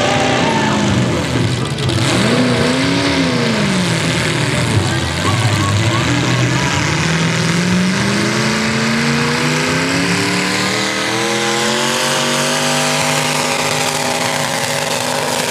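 A tractor engine roars loudly, its pitch dipping and then climbing steadily as it pulls.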